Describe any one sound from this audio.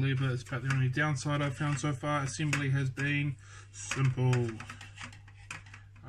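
Small plastic parts click as they are snapped into place.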